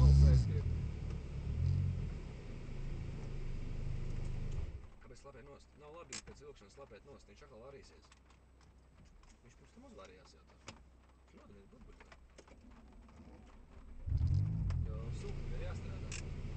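A car engine rumbles and pulls hard, heard from inside the car.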